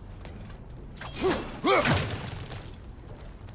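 A wooden crate breaks with a loud crash.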